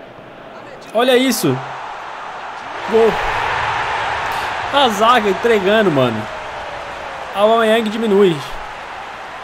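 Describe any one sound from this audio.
A young man shouts excitedly close to a microphone.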